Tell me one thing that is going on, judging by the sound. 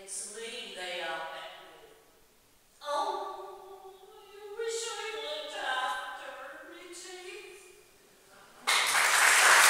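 A solo voice sings in a large echoing hall.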